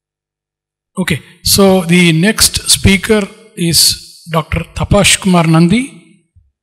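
A man speaks into a microphone through loudspeakers in a large hall, announcing.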